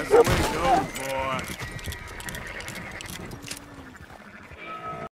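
A horse's hooves clop on a dirt path.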